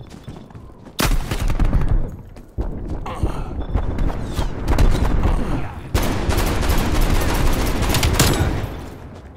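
Gunshots crack in short loud bursts.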